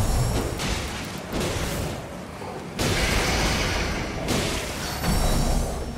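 A sword swings and strikes with heavy clangs.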